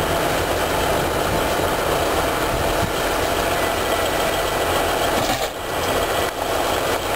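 A train engine rumbles steadily as the train creeps forward slowly.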